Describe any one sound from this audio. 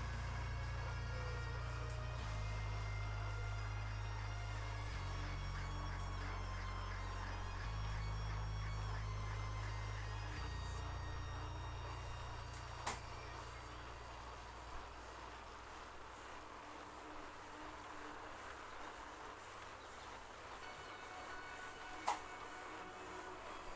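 An indoor bike trainer whirs steadily as a rider pedals.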